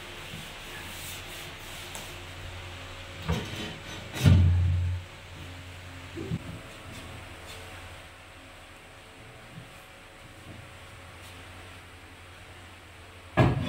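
A television plays faintly in the background.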